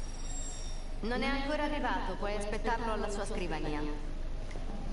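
A young woman speaks calmly and politely.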